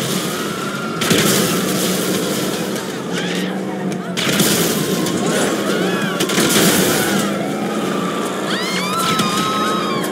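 Explosions boom in short bursts.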